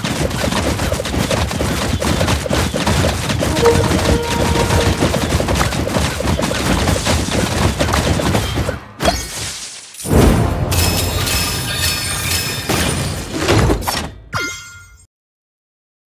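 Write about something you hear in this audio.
Game battle sounds clatter and pop busily.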